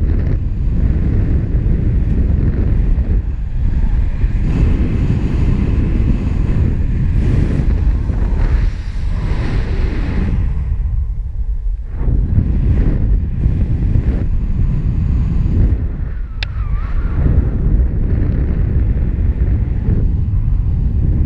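Wind rushes and buffets loudly past a flying paraglider.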